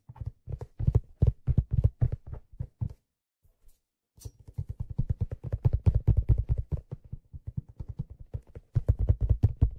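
Deep, ringing tones of a handpan are struck in a quick rhythm, with a short pause midway.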